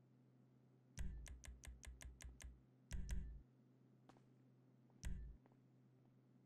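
Game menu clicks tick in a quick run.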